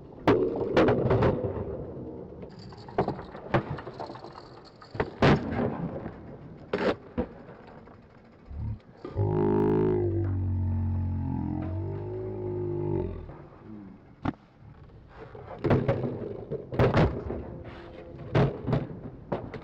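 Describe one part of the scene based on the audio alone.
A skateboard clacks sharply on concrete.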